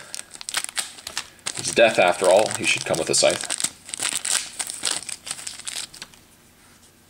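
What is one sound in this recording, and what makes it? A small plastic bag crinkles as hands open it.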